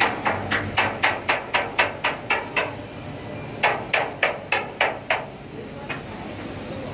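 A hammer chips at a steel deck with quick, regular blows.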